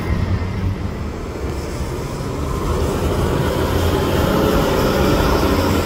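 A second bus drives past close by.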